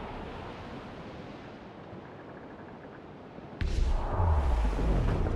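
Rough sea waves splash and rush around a sailing ship.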